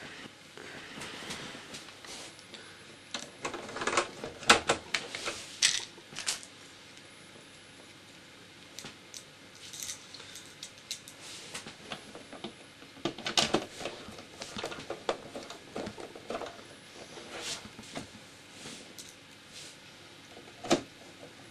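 Plastic parts clatter and knock as they are handled.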